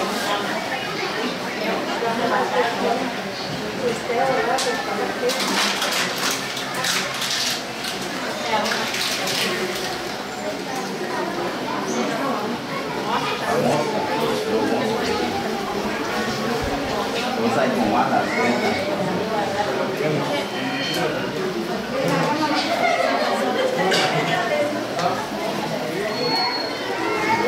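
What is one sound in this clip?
Several women talk nearby at the same time.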